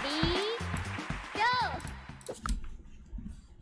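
Upbeat electronic game music plays.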